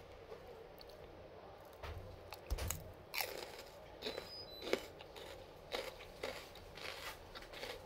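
A woman chews crunchy food close by with wet mouth sounds.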